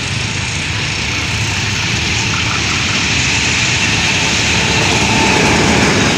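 A diesel locomotive approaches and roars past at high speed.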